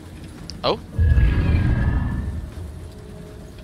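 A low ghostly whoosh swells and fades away.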